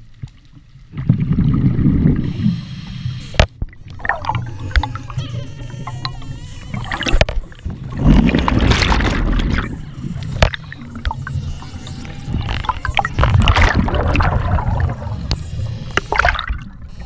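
Air bubbles gurgle and rush loudly underwater.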